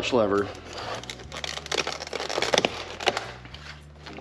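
Plastic packaging crinkles and rustles as hands open it.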